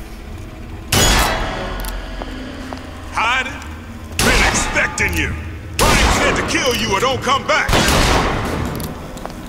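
Pistol shots ring out one after another.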